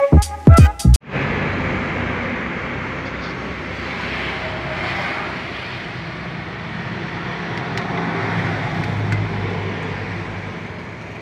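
A vehicle's engine hums steadily while driving, with road noise throughout.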